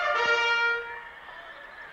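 A bugle call sounds nearby.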